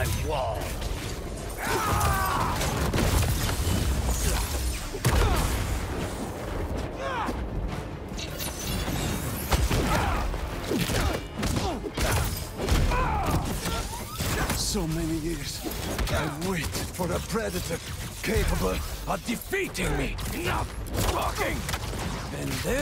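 Heavy blows and bursts thud and crash during a fight.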